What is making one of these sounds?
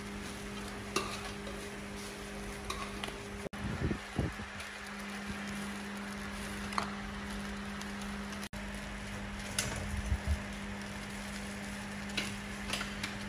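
A metal ladle clinks against a cooking pot.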